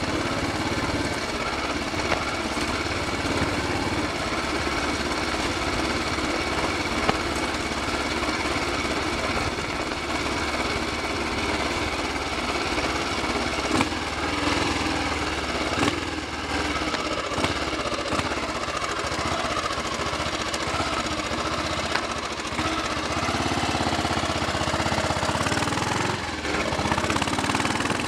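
A single-cylinder Royal Enfield Bullet motorcycle thumps along a road.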